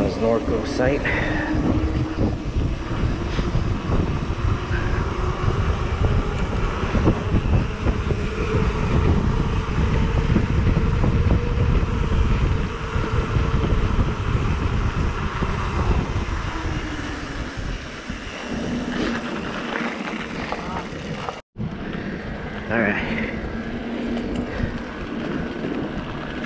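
Bicycle tyres roll on pavement and then on gravel.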